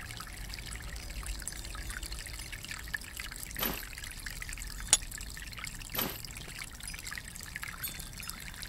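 Water runs steadily from a tap into a basin.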